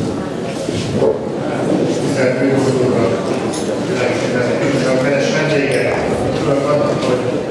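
A middle-aged man speaks calmly into a microphone, heard through loudspeakers in a large hall.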